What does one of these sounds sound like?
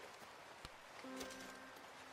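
A short chime rings out.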